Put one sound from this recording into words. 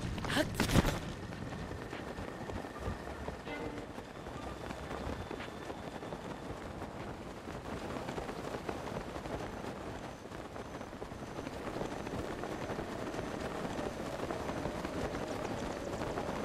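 Wind rushes steadily past while gliding through the air.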